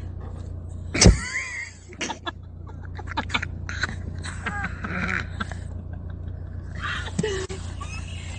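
A camel bumps its nose against a car window.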